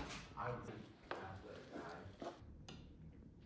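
A wooden spatula scrapes eggs around a pan.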